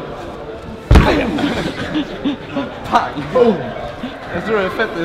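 Young men cheer and shout loudly.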